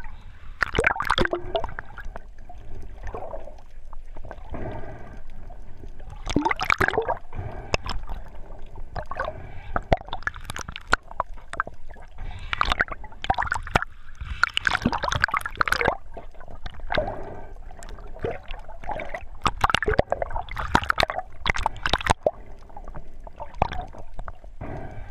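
Water splashes and gurgles around the swimmer.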